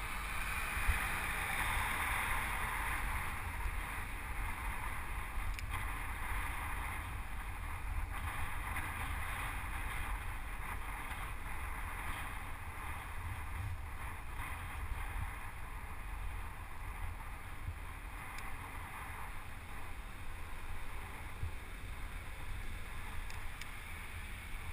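Wind rushes steadily past a cyclist riding along a road.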